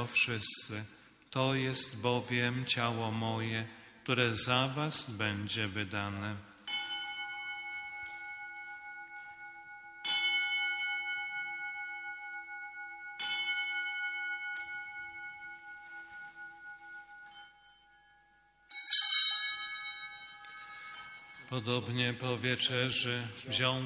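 A man chants a prayer in a large echoing hall.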